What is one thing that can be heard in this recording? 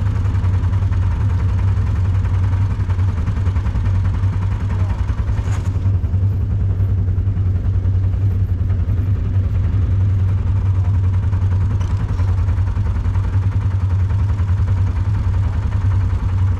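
A quad bike engine idles with a low, steady rumble close by.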